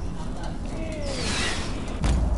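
A quick whooshing dash sound rings out.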